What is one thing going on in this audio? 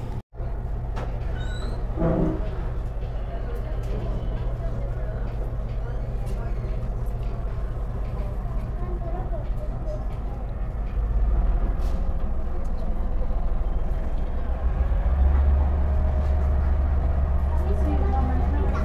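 A bus engine idles with a low, steady rumble and then grows louder as the bus pulls away.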